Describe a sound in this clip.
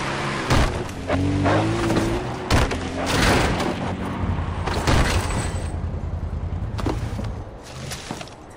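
A quad bike engine rumbles as it drives over rough ground.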